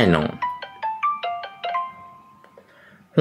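Short electronic beeps play from a phone in quick succession.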